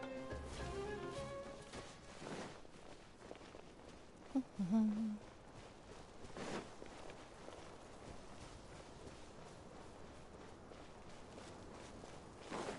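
Footsteps patter softly on sand.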